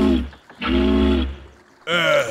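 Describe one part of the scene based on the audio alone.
A steamboat horn toots deeply twice.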